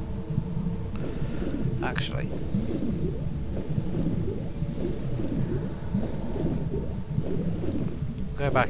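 Water swirls and gurgles as a swimmer moves underwater.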